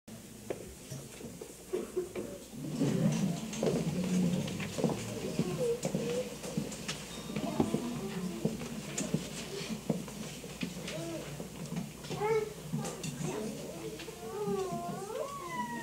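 Young children talk and sing in a room that echoes a little.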